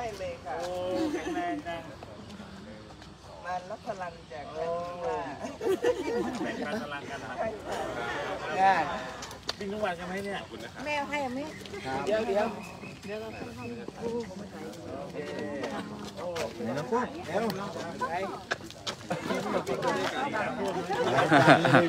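A woman talks and laughs close by.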